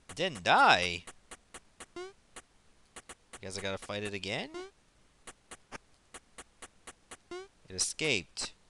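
Short electronic ticks patter as a small figure runs.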